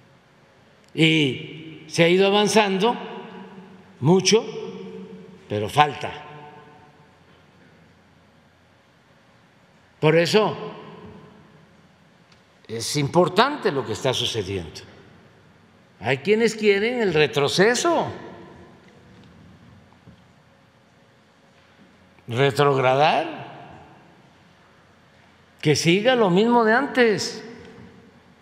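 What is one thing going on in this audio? An elderly man speaks into a microphone in bursts with long pauses, in a room with a slight echo.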